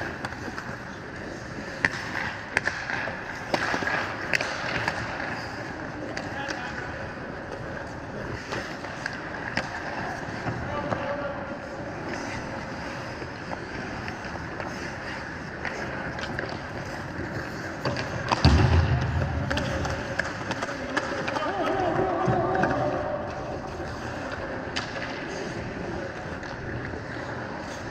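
Skate blades scrape and carve across the ice in a large echoing rink.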